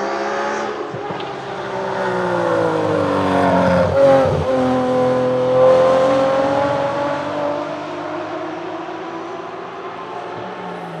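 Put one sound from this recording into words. A second racing car engine roars past and fades away.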